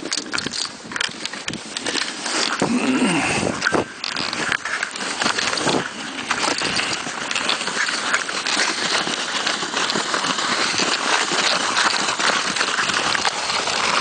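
A sled hisses as it slides over packed snow.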